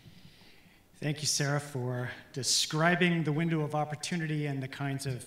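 A middle-aged man speaks calmly through a microphone.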